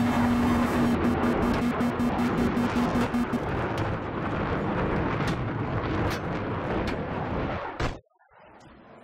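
A jet fighter roars past.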